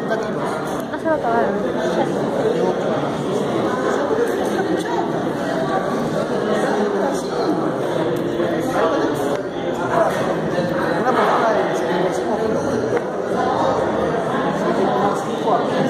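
Several people murmur softly in the background.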